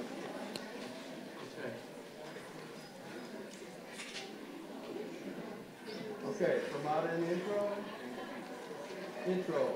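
A brass band plays a tune in a large echoing hall.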